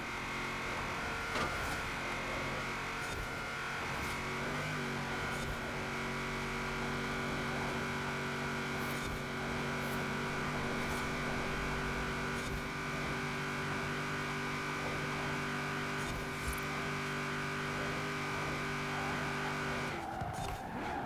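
A truck engine roars steadily at high speed.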